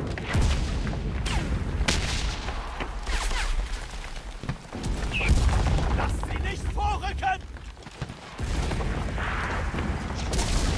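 Distant explosions rumble low and steadily.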